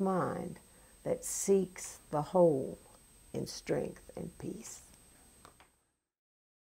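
An elderly woman speaks calmly and clearly into a nearby microphone.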